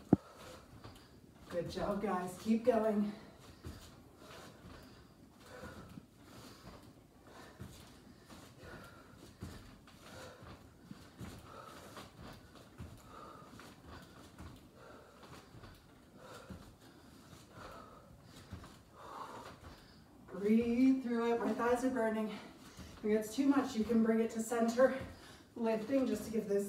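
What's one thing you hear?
Sneakers tap and shuffle on a mat as a woman jumps in and out.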